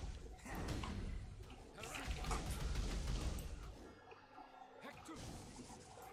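A spell crackles and whooshes.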